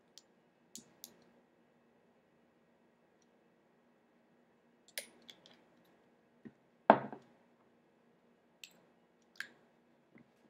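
Small metal parts click and tap together.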